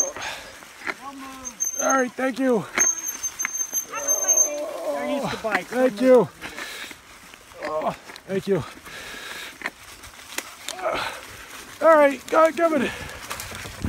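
Dogs bark and yelp excitedly nearby.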